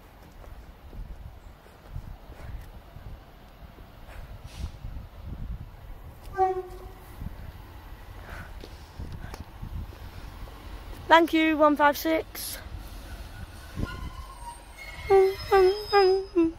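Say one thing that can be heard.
A diesel train approaches with a low, growing rumble.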